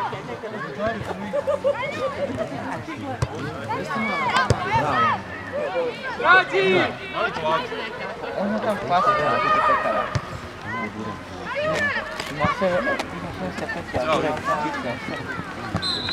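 Young players shout and call out to each other outdoors across an open field.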